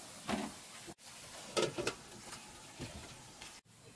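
A metal lid clanks down onto a wok.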